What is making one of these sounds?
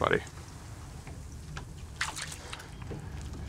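A fish splashes in the water close by.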